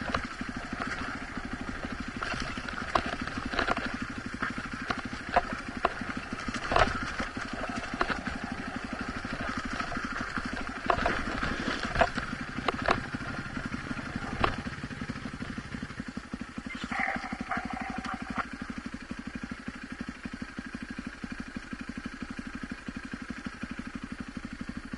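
A dirt bike engine putters steadily up close.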